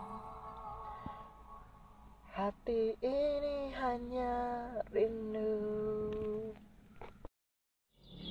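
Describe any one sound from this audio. A young man sings loudly and close by.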